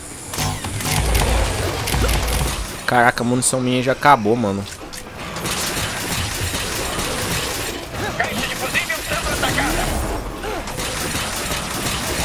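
Rapid gunfire and blasts crackle in a game.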